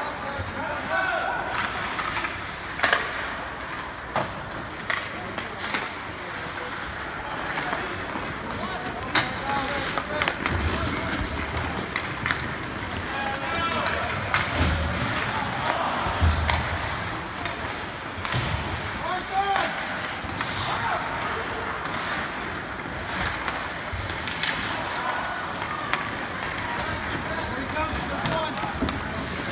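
A crowd of spectators chatters and calls out in an echoing arena.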